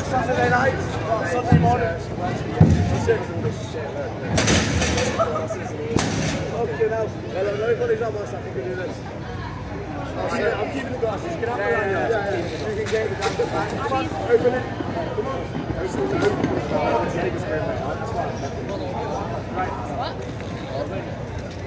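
A young man talks outdoors on a street.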